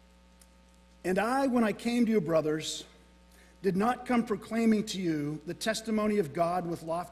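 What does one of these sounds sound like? A man reads aloud clearly through a microphone.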